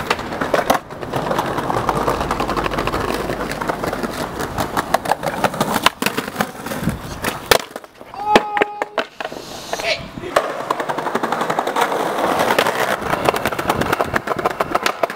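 Skateboard wheels roll and rumble over paving stones.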